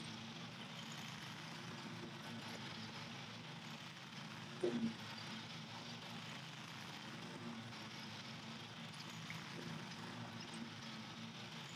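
A lawn mower engine hums steadily in the distance outdoors.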